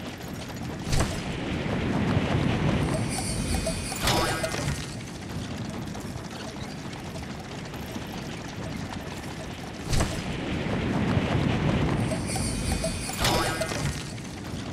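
Wind rushes loudly as a game character dives through the air.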